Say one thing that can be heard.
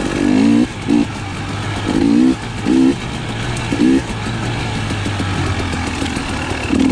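A dirt bike engine revs up and down in bursts, close by.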